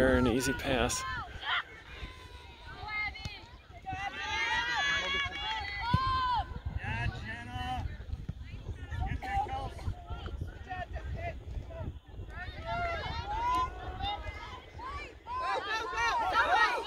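Young women and girls shout and call out to each other across an open playing field.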